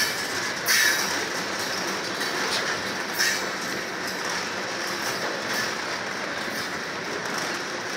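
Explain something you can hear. Freight train cars rumble steadily past on the rails.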